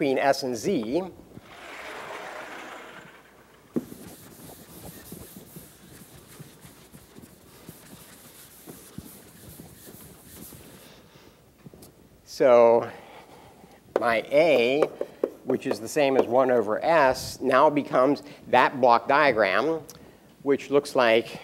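A man lectures in a large echoing hall, speaking calmly through a microphone.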